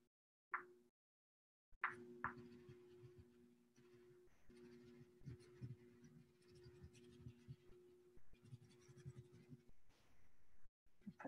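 A pastel stick scratches softly across paper.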